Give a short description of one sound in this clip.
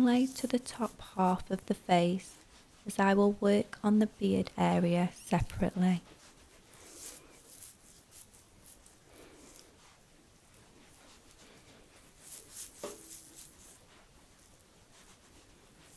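Hands rub gently over skin.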